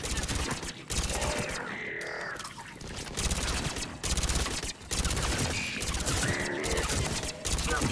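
Energy blasts crackle and hiss.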